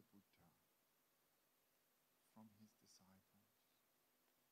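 A man speaks calmly and slowly into a microphone, with long pauses.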